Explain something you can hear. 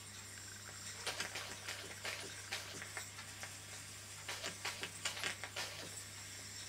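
A small steam engine puffs and hisses in quick, uneven bursts.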